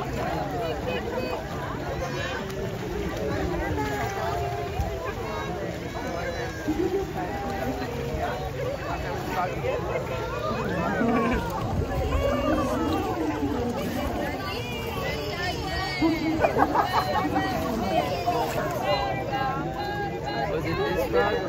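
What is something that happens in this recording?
Children and adults chatter and call out around an outdoor pool.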